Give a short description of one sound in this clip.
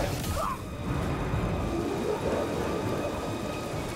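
A lightsaber hums low and steady.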